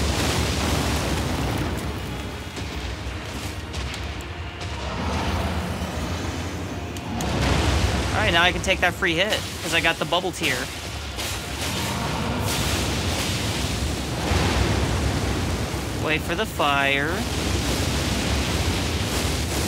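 Flames burst with a loud roaring whoosh.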